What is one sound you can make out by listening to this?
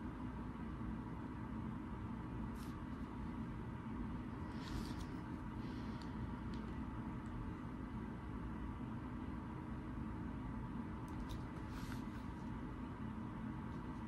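Paper pages rustle softly under a hand.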